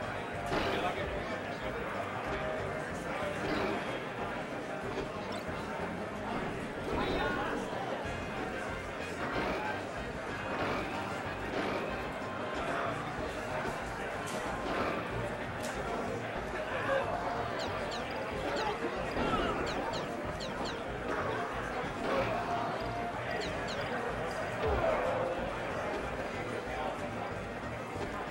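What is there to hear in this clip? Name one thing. Video game hits and effects pop and clatter.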